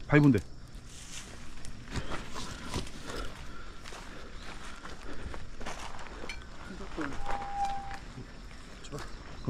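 Footsteps crunch and scuff on a dirt trail.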